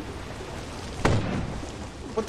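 A loud gunshot bangs.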